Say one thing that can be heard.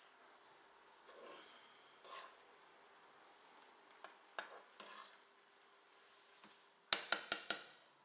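A metal spoon scrapes and knocks against a pan.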